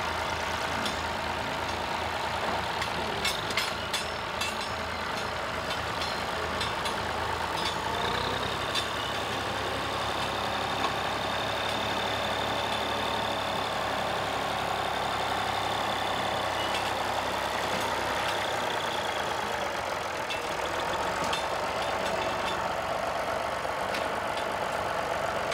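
A plough scrapes through soil.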